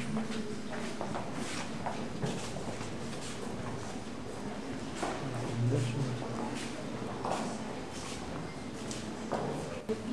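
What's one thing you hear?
Men and women talk quietly nearby in an echoing corridor.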